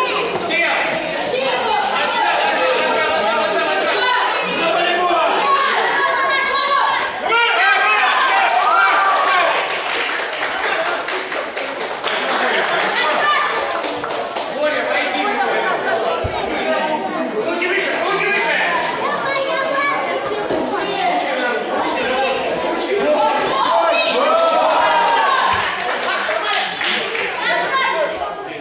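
Many children and adults chatter and call out in a large echoing hall.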